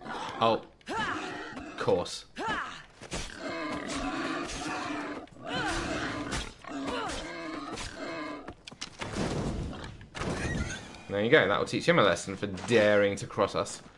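A boar grunts and squeals.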